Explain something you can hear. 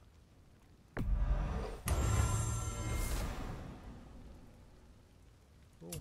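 A deep whooshing boom swells and rings out slowly.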